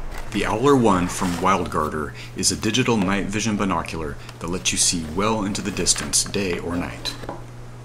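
Cardboard scrapes and rubs as a box is opened by hand.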